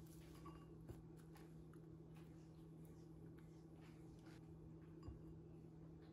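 Vegetables rustle softly as they are dropped into a bowl.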